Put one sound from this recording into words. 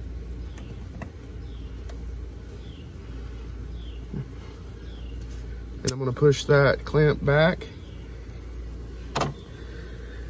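Metal parts click and clink.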